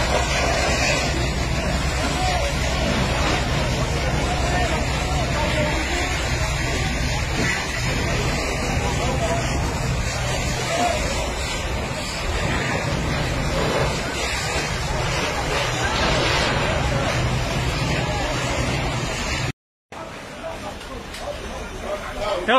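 Water hisses out of fire hoses in a steady spray.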